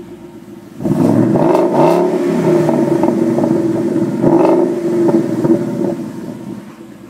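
A car engine starts with a loud roar and revs close by.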